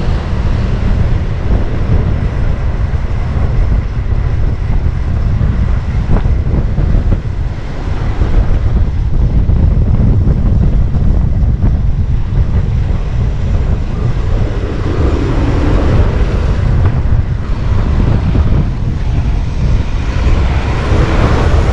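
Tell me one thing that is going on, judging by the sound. Wind rushes loudly past a moving bicycle.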